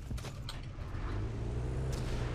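A jeep engine idles and revs.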